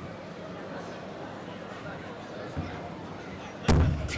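A table tennis ball bounces lightly on a paddle.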